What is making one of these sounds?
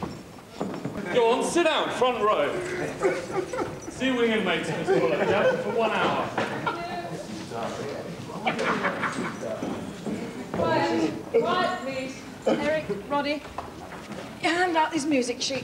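A man speaks with animation in an echoing hall.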